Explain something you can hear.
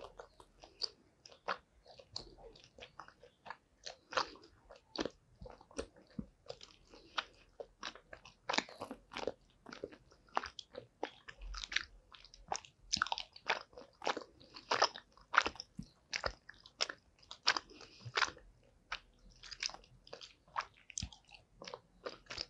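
A woman chews soft candy with wet, smacking mouth sounds close to a microphone.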